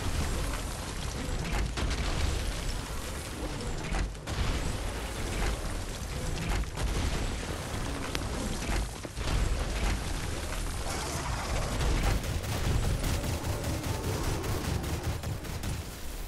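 A heavy mechanical robot stomps along with thudding footsteps.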